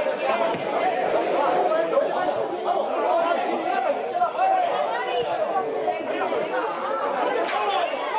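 A small crowd of spectators chatters close by, outdoors.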